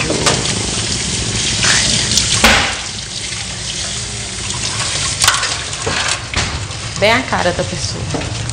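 Dishes clink in a metal sink.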